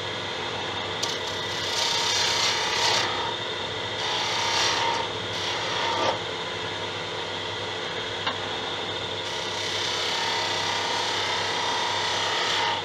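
A hand tool scrapes and hisses against a turning workpiece.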